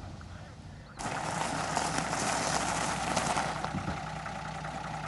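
A car engine idles.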